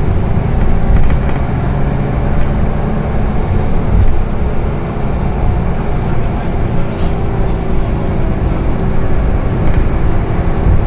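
The bus body rattles and clicks over the road.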